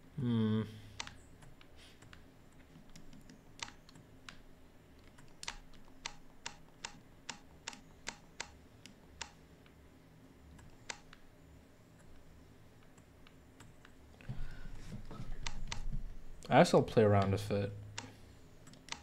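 Soft menu clicks tick in quick succession.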